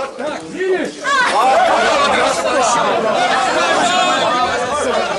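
Several men laugh and shout loudly.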